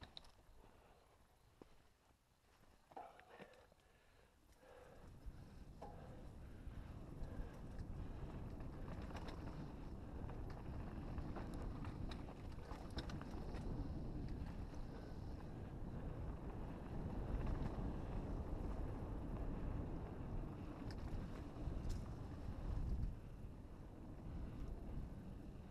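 Tyres crunch on loose dirt.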